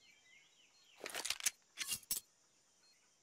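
A knife is drawn with a short metallic swish.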